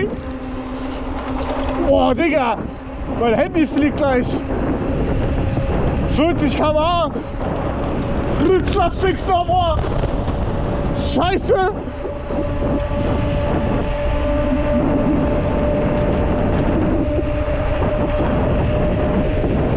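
Bicycle tyres roll over a rough paved path.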